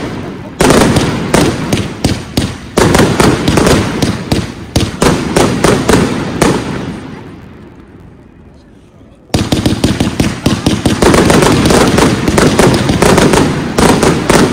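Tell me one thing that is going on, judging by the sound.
Fireworks burst and crackle in rapid, loud bangs.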